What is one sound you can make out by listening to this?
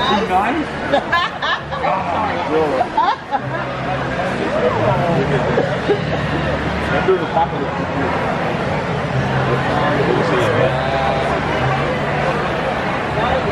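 A crowd murmurs and chatters throughout a large, echoing hall.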